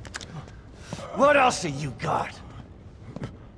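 A deep-voiced man speaks menacingly.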